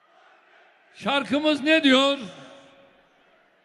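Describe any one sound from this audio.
A man speaks forcefully through loudspeakers in a large echoing hall.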